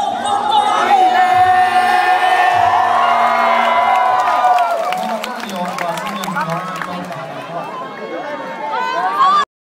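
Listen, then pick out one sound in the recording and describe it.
Loud amplified music plays from a stage.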